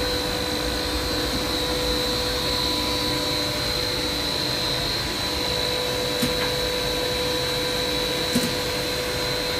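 A machine hums and whirs steadily.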